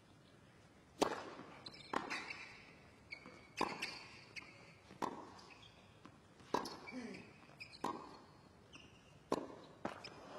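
Tennis balls are struck hard with rackets in a sharp back-and-forth rally.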